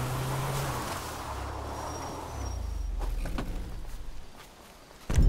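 A car engine rumbles and drives over rough ground.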